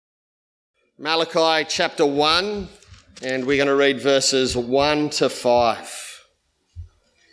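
A middle-aged man reads aloud calmly into a microphone.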